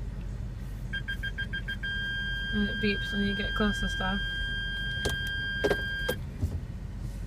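A car's reversing warning beeps repeatedly.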